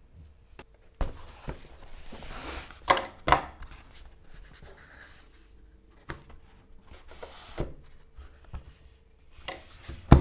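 Tools knock against each other inside a leather roll.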